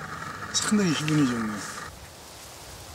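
An elderly man speaks calmly, close by.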